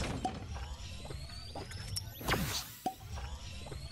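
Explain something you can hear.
Footsteps thud and scuff on stone.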